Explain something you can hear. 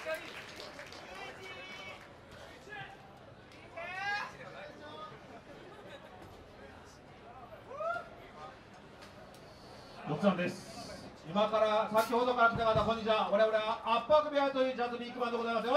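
A jazz band plays softly.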